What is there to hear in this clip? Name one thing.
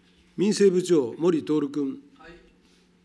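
An elderly man speaks briefly into a microphone in a calm, formal tone.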